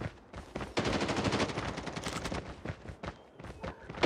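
Rapid gunfire crackles in short bursts.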